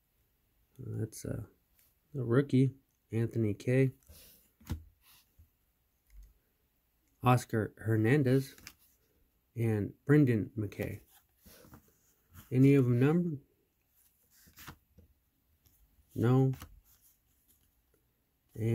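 Stiff trading cards slide and rustle softly between fingers.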